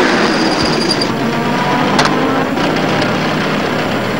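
Tyres skid on a dirt road.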